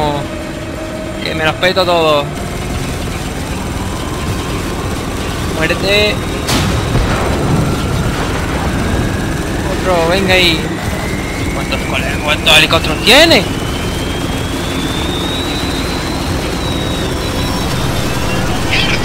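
A minigun fires in a continuous, rapid roar.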